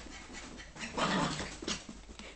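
A small dog barks close by.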